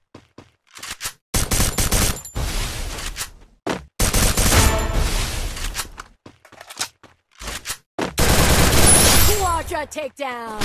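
A submachine gun fires in rapid bursts.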